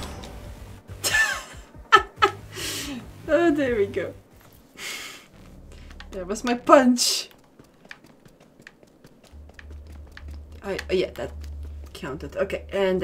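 A young woman talks and laughs with animation into a microphone.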